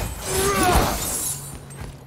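Flames crackle and roar close by.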